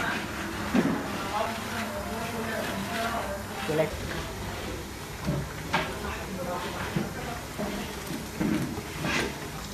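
A metal ladle scrapes and stirs in a pot.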